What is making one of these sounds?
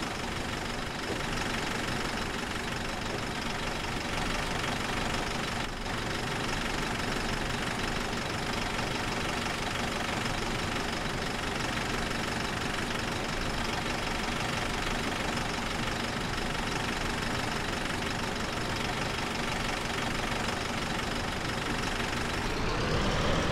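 A diesel city bus engine idles.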